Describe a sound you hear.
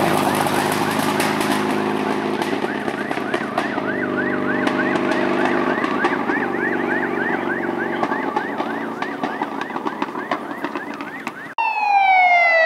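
A rally car engine roars and fades as the car speeds away.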